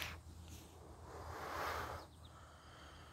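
A man blows out a long, breathy exhale.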